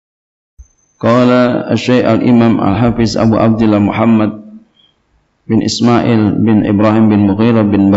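A man speaks steadily into a microphone, pausing briefly now and then.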